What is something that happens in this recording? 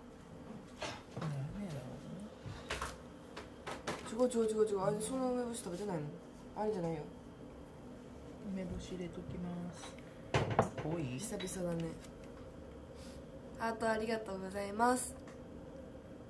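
A young woman speaks softly, close to a microphone.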